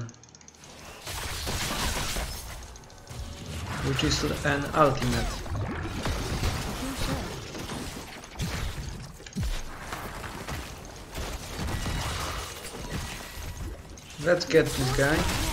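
Game combat sounds clash and burst with magic effects.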